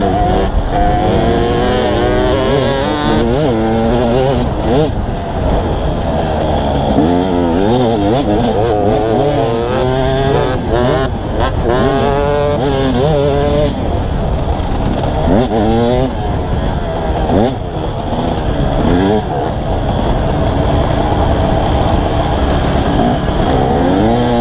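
A two-stroke dirt bike engine revs up and down close by.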